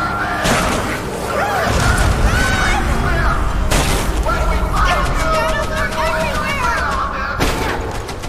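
A helicopter's rotor thumps as it hovers nearby.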